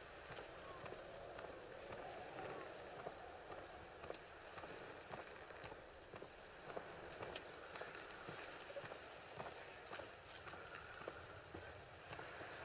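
Footsteps tread steadily on a stone path.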